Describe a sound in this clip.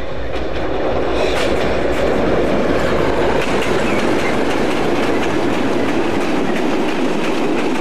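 A diesel locomotive rumbles loudly as it passes close by.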